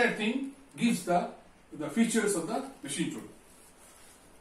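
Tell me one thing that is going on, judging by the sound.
An elderly man speaks calmly up close, explaining.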